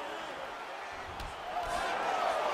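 A fist thuds against a body.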